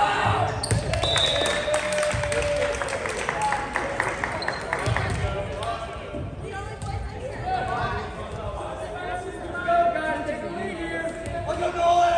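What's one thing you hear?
Young men call out to each other across a large echoing hall.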